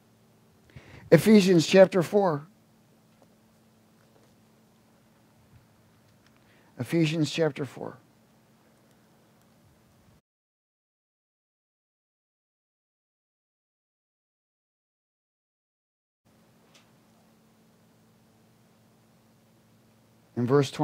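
A man speaks calmly through a microphone, pausing often.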